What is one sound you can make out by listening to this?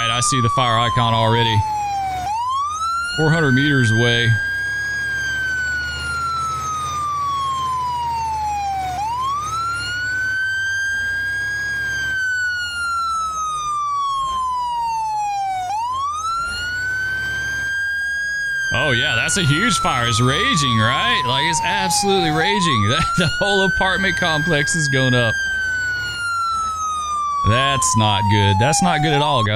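A siren wails steadily, rising and falling over and over.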